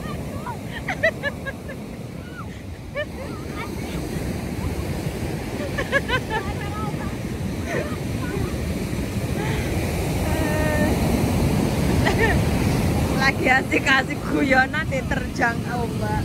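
Waves crash and wash up on a beach, growing louder.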